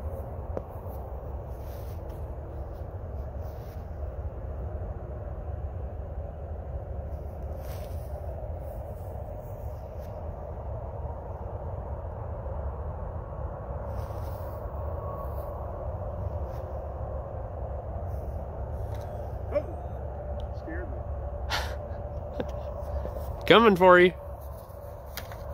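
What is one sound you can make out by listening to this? A small model plane's electric motor hums steadily overhead.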